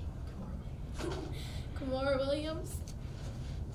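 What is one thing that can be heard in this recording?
A girl speaks briefly into a microphone.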